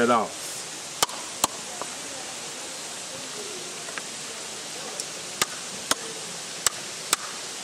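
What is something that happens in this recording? A man knocks a coconut against a rock with sharp cracks.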